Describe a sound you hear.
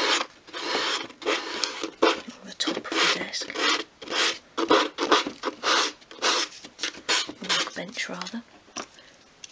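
Sandpaper rubs against wood in short, scratchy strokes.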